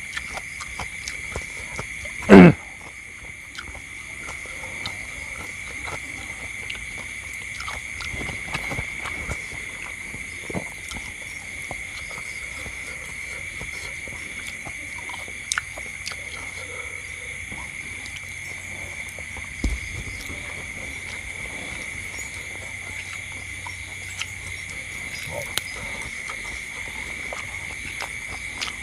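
A middle-aged man chews food close to the microphone.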